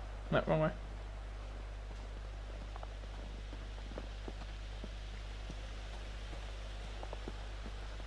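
Footsteps crunch softly on snow.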